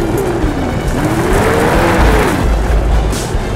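A motorcycle engine revs high, then drops away as the bike slows.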